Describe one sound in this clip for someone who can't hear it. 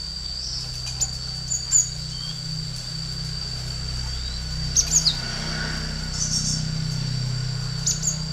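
A small bird chirps in short, sharp bursts close by.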